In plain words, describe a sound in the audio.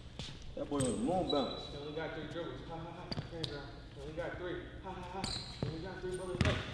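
A basketball bounces on a wooden court floor.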